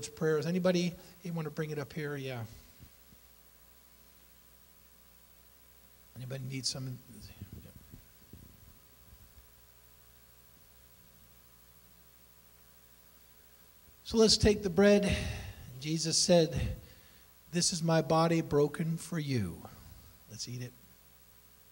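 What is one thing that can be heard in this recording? A middle-aged man speaks with animation into a microphone, heard through loudspeakers in a large room.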